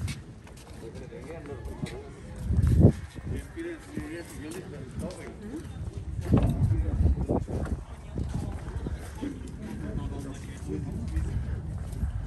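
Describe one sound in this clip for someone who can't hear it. Several adults chatter nearby.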